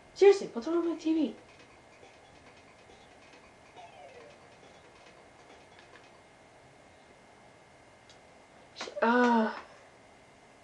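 Short electronic game jingles chime from a small speaker.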